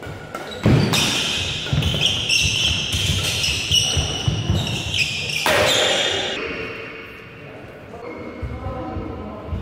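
Footsteps shuffle and thump on the court floor.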